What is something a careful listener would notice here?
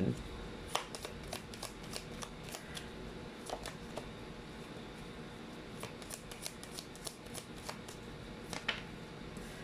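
Playing cards are shuffled and riffled in the hands.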